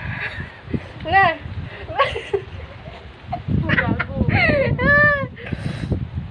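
A young woman laughs loudly.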